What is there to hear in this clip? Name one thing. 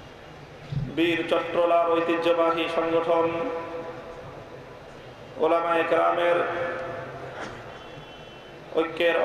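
A man preaches forcefully through a loudspeaker, in long chanted phrases.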